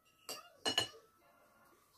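A metal utensil clinks against a plate.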